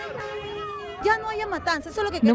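A woman speaks loudly and with animation, close to a microphone.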